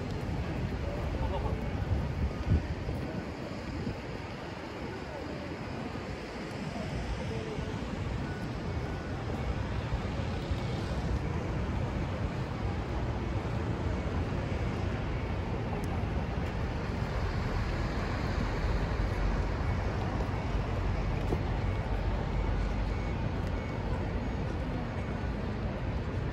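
Footsteps tap on paving outdoors.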